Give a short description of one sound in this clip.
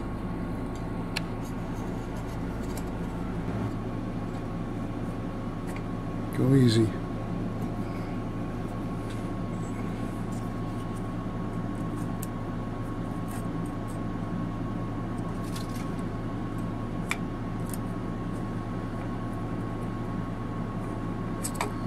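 A metal blade scrapes against metal.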